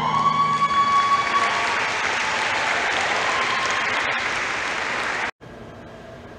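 An audience cheers and applauds loudly in a large hall.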